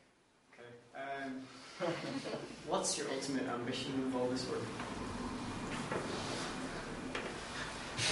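A young man speaks calmly to a room.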